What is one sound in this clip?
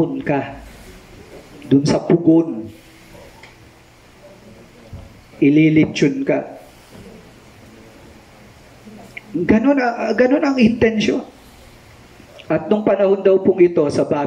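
A middle-aged man speaks calmly through a headset microphone, pausing between phrases.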